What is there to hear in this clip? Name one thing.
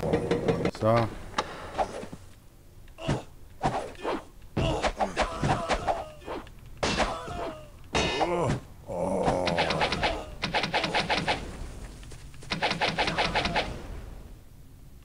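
Swords clash and strike repeatedly in a fight.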